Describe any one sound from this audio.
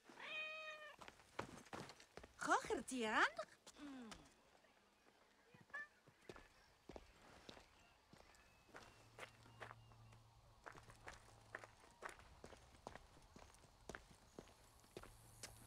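Footsteps crunch on sand and stone at a steady walking pace.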